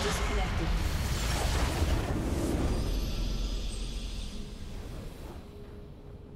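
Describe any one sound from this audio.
Magic blasts crash and whoosh loudly.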